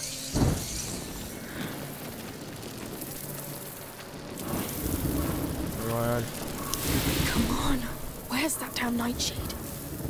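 A torch crackles and burns.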